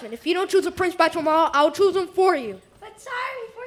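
A young performer sings loudly in a hall.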